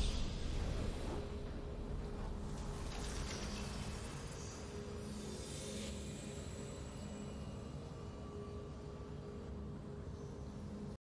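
Soft game music plays steadily.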